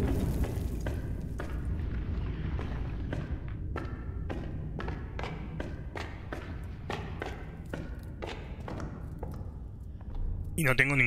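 Footsteps tap slowly across a hard floor.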